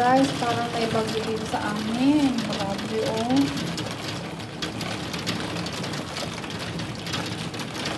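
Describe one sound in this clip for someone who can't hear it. Heavy rain patters steadily against a window.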